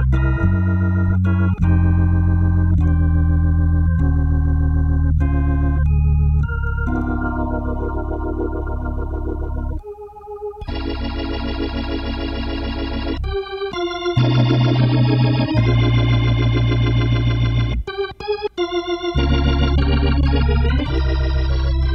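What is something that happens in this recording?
An organ plays chords and melody with a sustained, full tone.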